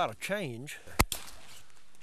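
A shotgun fires a single loud shot outdoors.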